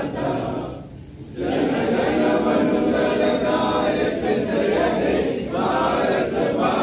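A group of men and women sing together in unison.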